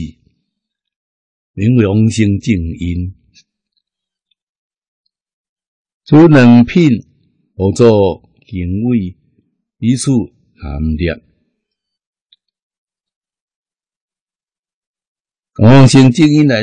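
An elderly man speaks slowly and calmly into a close microphone, with long pauses.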